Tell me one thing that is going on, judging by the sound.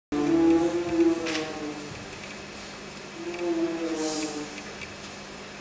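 An orchestra plays sustained notes in a hall.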